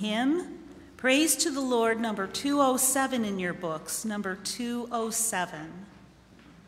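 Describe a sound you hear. A middle-aged woman reads aloud through a microphone.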